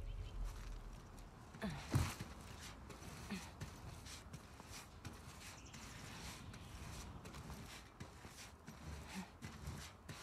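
Footsteps and shuffling scrape along a wooden walkway.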